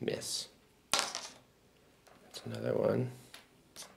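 A die clatters onto a game board.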